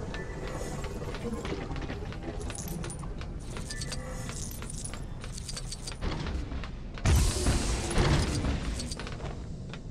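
Small coins jingle and chime as they are collected.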